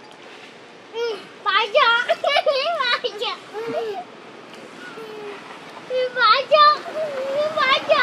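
A baby monkey squeals and cries loudly in high, wavering calls.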